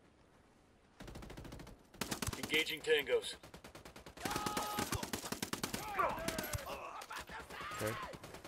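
A suppressed rifle fires rapid shots.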